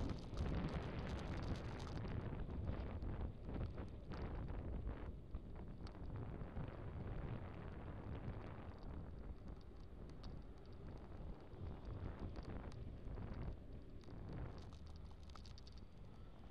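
Wind rushes loudly past while riding along a road.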